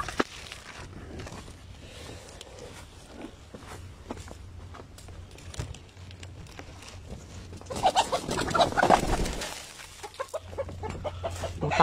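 Chickens cluck nearby.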